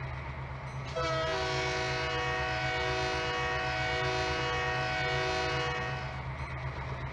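A diesel locomotive's horn blows.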